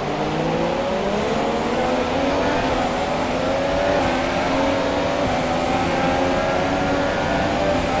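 A racing car engine screams, rising in pitch and dropping briefly at each gear change.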